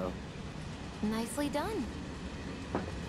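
A young woman speaks briefly with a teasing tone.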